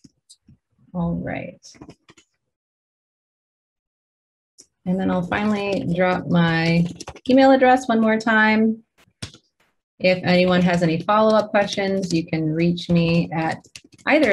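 A young woman speaks calmly and close to a microphone, as if in an online call.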